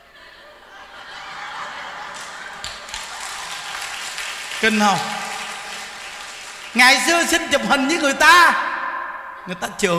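A crowd of women laughs loudly together.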